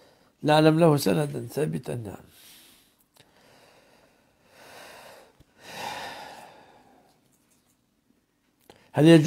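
An elderly man speaks calmly and slowly into a close microphone.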